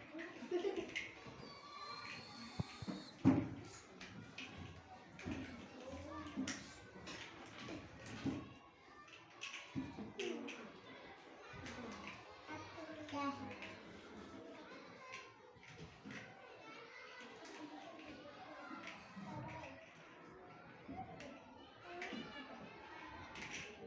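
Young children chatter nearby.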